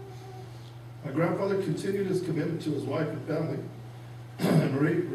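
A man speaks calmly into a microphone, heard over a loudspeaker in a room.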